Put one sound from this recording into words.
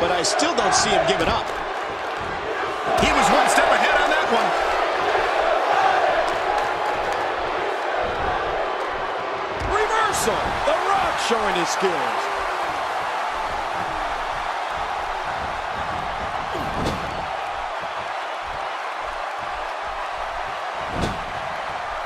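Bodies thud and slam onto a wrestling ring mat.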